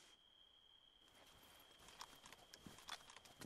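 Footsteps crunch on gravel nearby.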